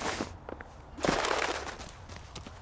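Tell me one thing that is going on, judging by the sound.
A wooden fence creaks and rattles as someone climbs over it.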